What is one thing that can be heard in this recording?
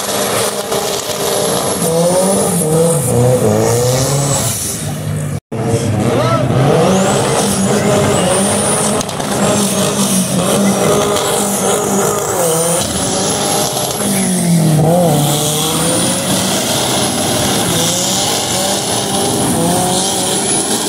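Tyres screech on asphalt as a car slides.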